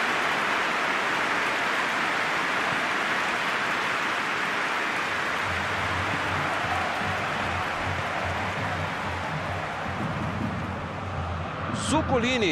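A large stadium crowd roars steadily in the distance.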